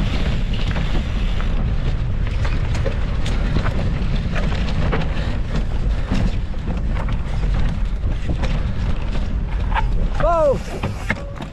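Bicycle tyres rumble and rattle over rough dirt and rock.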